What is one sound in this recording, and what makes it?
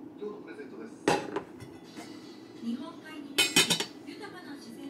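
A metal lid clinks onto a metal pot.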